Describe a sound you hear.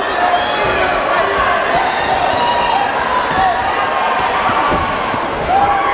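Boxing gloves thud against a boxer's body.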